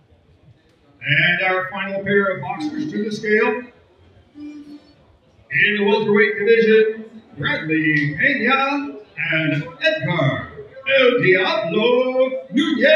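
A middle-aged man announces loudly through a microphone, with lively pauses.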